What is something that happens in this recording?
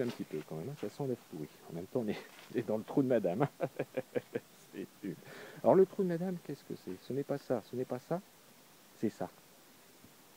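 A middle-aged man talks with animation close to the microphone, outdoors.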